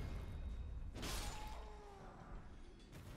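A magical burst whooshes and crackles.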